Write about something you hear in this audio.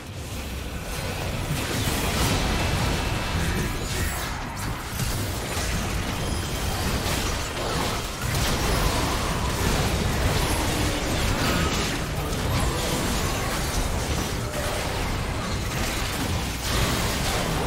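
Magic spells and blasts crackle and boom in a fast, busy fight.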